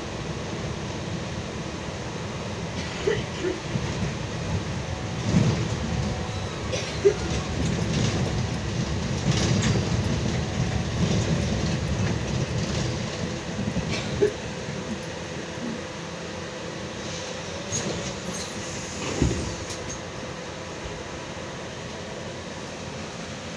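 Tyres rumble over a snowy road.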